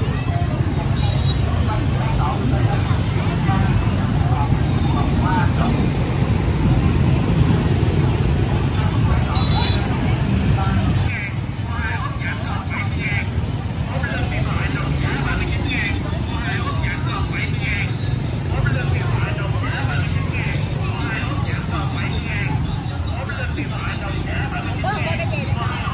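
Motorbike engines hum and putter past close by.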